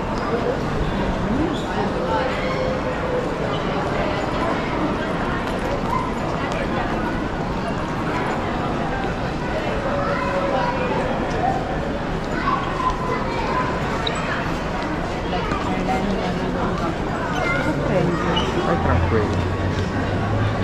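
Suitcase wheels roll across a smooth hard floor.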